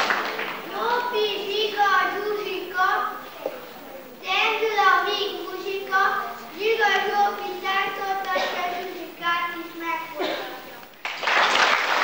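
A choir of young children sings together in a large echoing hall.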